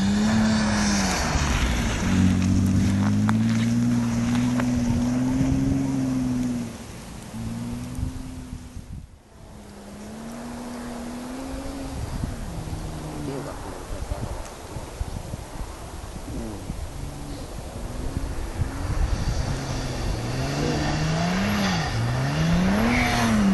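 A car engine revs hard and roars, fading into the distance and then coming closer again.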